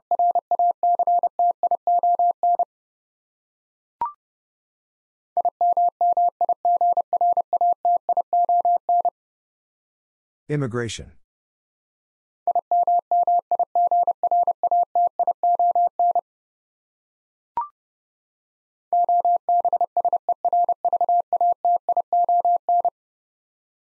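A Morse code key taps out quick, steady beeping tones in bursts.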